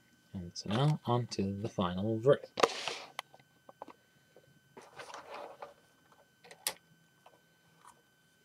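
Plastic toy figure parts click and rattle as hands move them.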